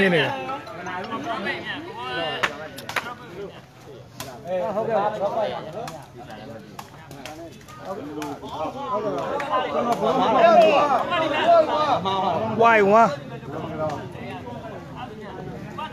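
A crowd of onlookers cheers and shouts outdoors.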